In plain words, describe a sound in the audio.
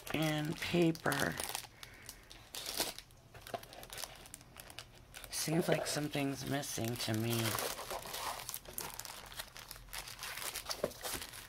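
Sheets of card rustle and flick as they are leafed through by hand.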